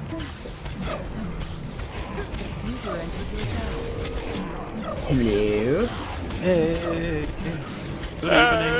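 Blows and magic effects clash in a game battle.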